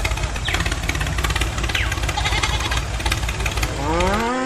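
Plastic toy wheels crunch and scrape over coarse sand.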